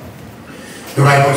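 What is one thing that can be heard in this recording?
A man speaks loudly through a microphone and loudspeakers.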